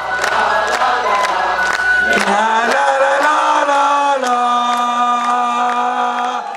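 A live band plays loudly in a large hall.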